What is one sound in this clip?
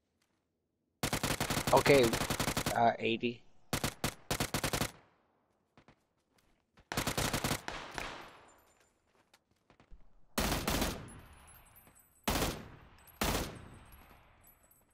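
A rifle fires rapid bursts of shots that echo away outdoors.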